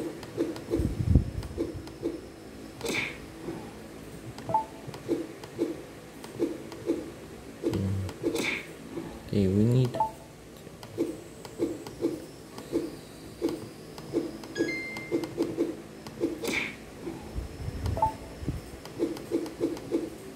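Short electronic flapping blips from a video game repeat quickly through small laptop speakers.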